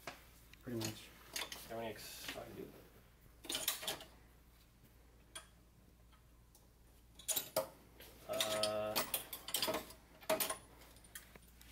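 Metal tools clink and rattle in a drawer.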